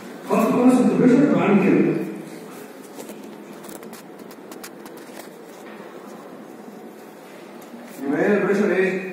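A man speaks calmly, lecturing.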